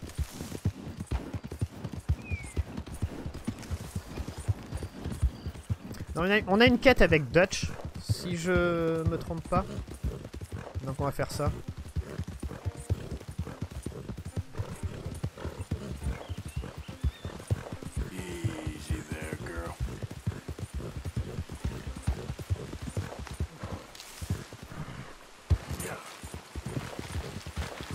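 Horse hooves pound rapidly on the ground at a gallop.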